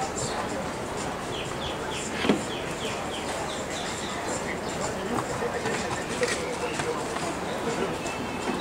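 A horse canters on soft sand with dull hoofbeats.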